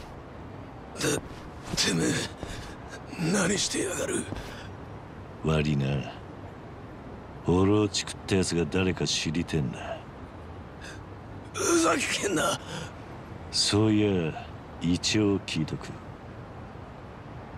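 A man speaks angrily and strained, close by.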